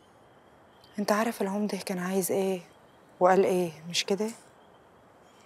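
A young woman speaks quietly in reply.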